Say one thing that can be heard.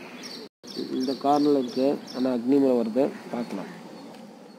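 A man speaks clearly close by.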